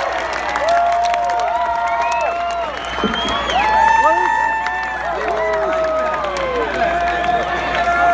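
A crowd cheers nearby.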